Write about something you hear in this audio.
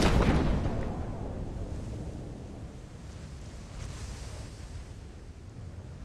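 Wind flutters softly against a parachute canopy.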